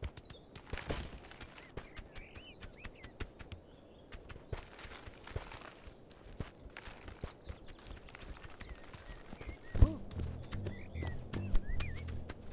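A goose's webbed feet patter quickly on the ground.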